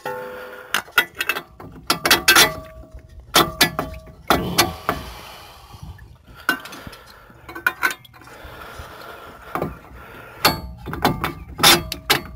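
Metal tools clink and clank against a car's brake parts.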